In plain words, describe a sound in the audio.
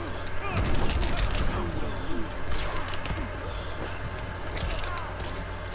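A crackling energy blast sizzles and fizzes.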